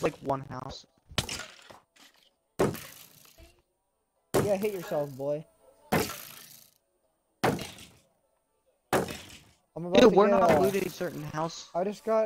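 A sword strikes with sharp thuds, again and again.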